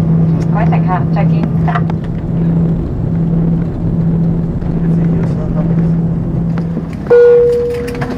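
A jet engine hums steadily as an airliner taxis.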